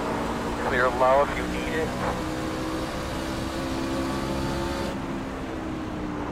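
A race car engine drones steadily at high speed.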